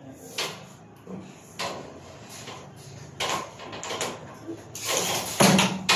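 A cable scrapes and rustles as it is pulled through a ceiling.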